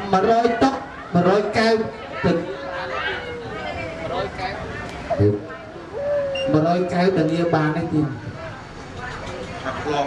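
A man talks animatedly into a microphone over loudspeakers.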